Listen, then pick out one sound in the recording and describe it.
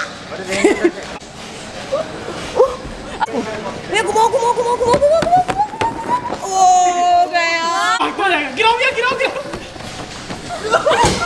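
Young people shout and laugh with excitement nearby.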